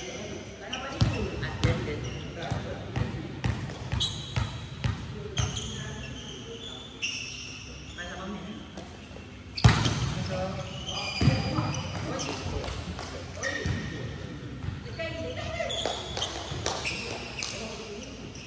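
A volleyball is struck by hands with sharp slaps in a large echoing hall.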